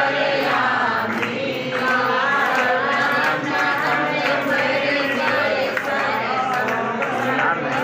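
A crowd of women and men sing together.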